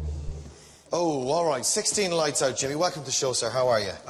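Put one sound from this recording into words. A man speaks on a television show, heard through speakers.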